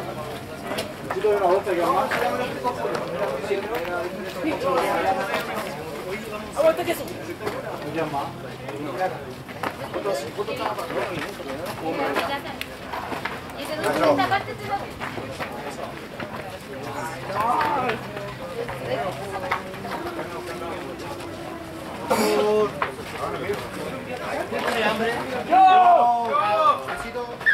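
Young men shout calls to each other outdoors across a playing field.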